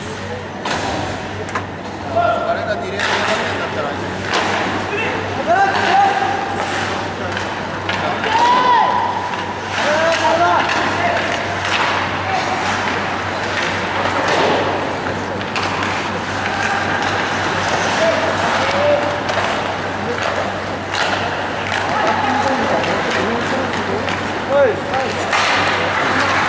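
Skates scrape and hiss on ice in an echoing rink.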